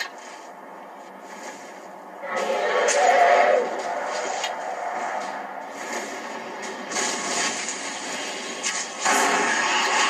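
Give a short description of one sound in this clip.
A bow string twangs as an arrow is loosed.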